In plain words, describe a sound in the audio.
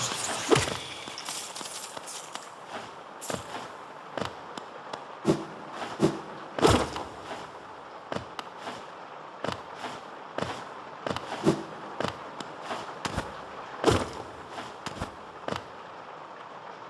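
Light footsteps and jumps patter with short clicks.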